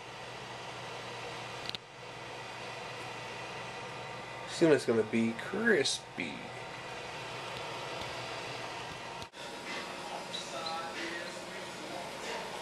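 A countertop convection oven hums steadily.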